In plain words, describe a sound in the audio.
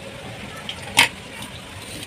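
A metal lid clinks against a steel pot.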